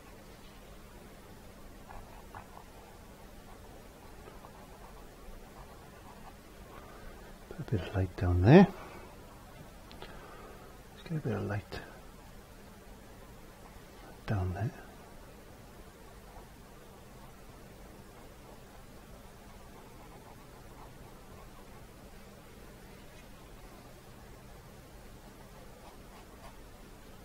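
A paintbrush softly strokes across canvas.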